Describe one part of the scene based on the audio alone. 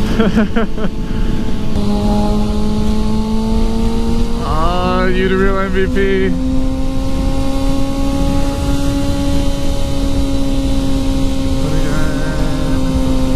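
Wind buffets a motorcycle rider's helmet at speed.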